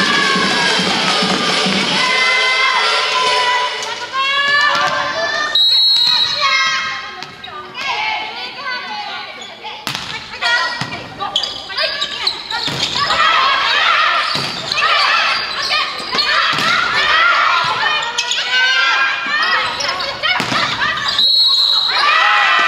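Young women shout and cheer in a large echoing hall.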